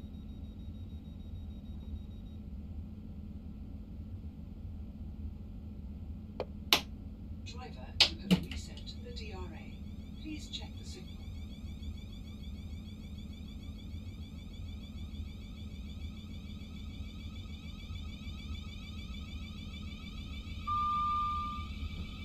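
A train's motor hums low and steady as it rolls along the tracks.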